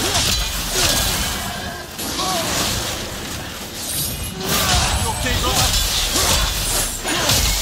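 A warrior swings an axe with whooshing swings.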